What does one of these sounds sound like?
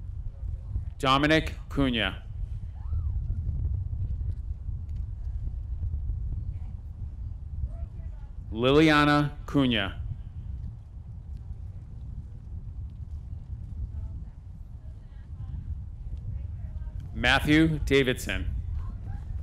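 A man reads out names through a loudspeaker, echoing outdoors.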